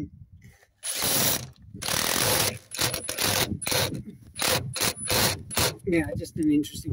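A power drill whirs in short, loud bursts.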